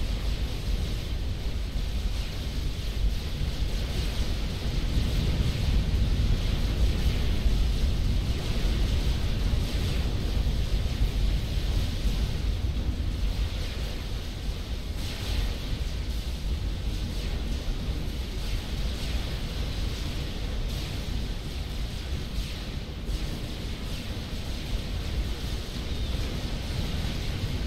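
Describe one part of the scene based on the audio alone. Laser weapons fire and explosions rumble in a battle.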